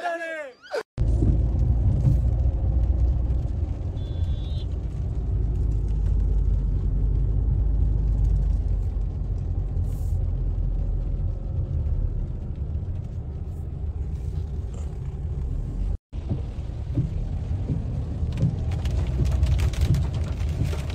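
A car's engine and tyres rumble, heard from inside the car as it drives.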